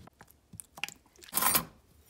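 Liquid pours into a bowl.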